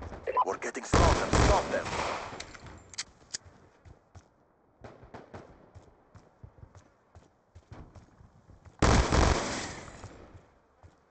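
A pistol fires.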